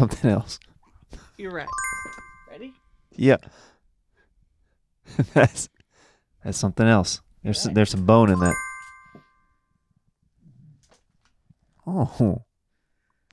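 A man talks and laughs into a close microphone.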